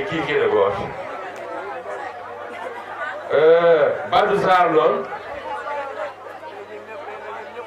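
An elderly man speaks with animation into a microphone, amplified through loudspeakers.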